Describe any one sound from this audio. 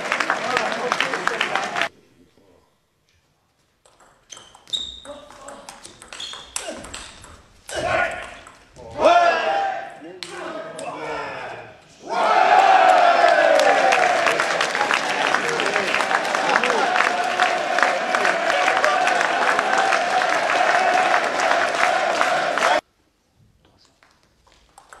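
A table tennis ball clicks sharply off paddles and the table in a quick rally.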